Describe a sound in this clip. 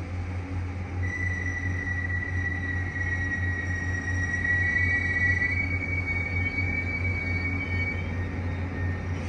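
Train brakes squeal with a high, steady whine.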